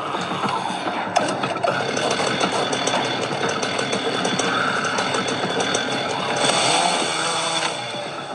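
A chainsaw buzzes steadily in a video game.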